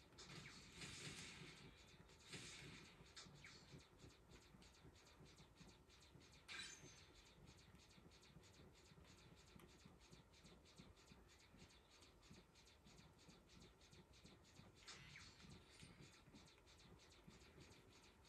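Rapid laser shots from a video game play through a television speaker.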